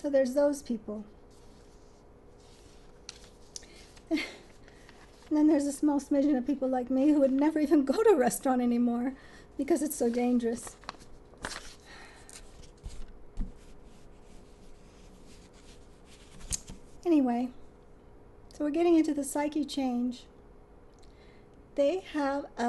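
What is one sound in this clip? A woman speaks calmly and close by, with pauses.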